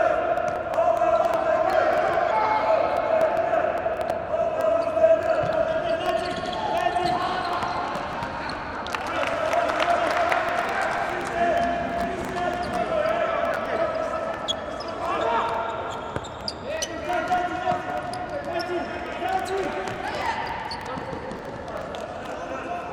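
Shoes squeak sharply on a hard indoor court.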